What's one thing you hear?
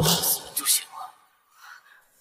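A young man speaks in a low, cold voice.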